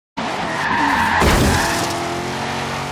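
Tyres screech loudly on the road.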